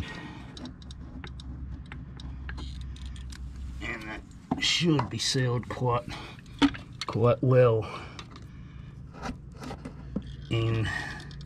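A caulking gun's trigger clicks as sealant is squeezed out.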